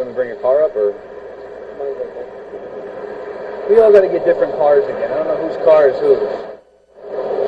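A man speaks loudly and tensely, heard through a microphone.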